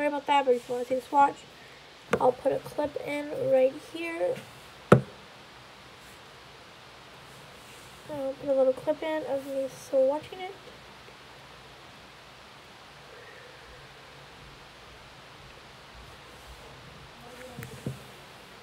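A young woman speaks softly and close to the microphone, in short bursts.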